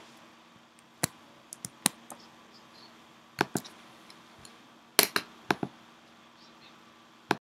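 A computer mouse clicks sharply several times.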